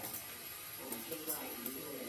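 Dry rice pours into a metal pot.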